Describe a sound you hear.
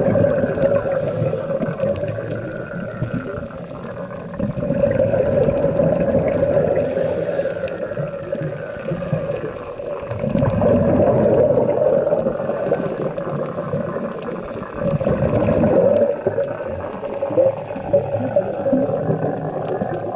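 Scuba bubbles gurgle and rush up in slow, regular surges underwater.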